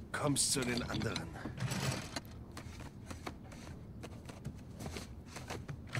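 A metal drawer slides open.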